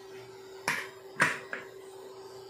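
A pressure cooker's weight clicks as a hand moves it on the lid.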